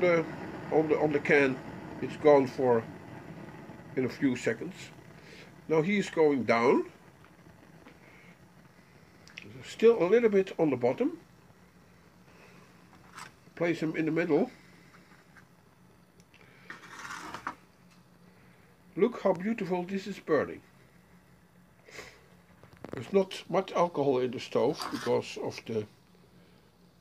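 A small alcohol stove burns with a soft, steady hiss.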